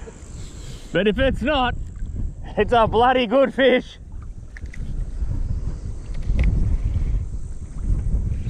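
Wind rumbles across open water.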